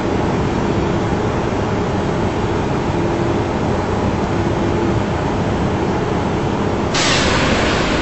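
Jet engines hum steadily, heard from inside a cockpit.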